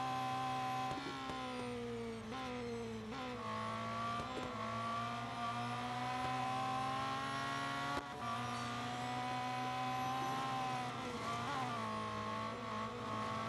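A racing car engine winds down sharply when braking for corners.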